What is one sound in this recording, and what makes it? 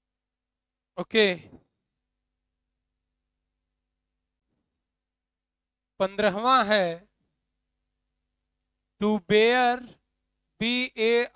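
A man speaks in short bursts, calmly explaining, close by.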